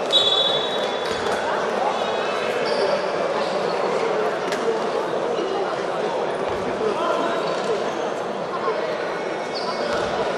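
A crowd murmurs and chatters in the stands.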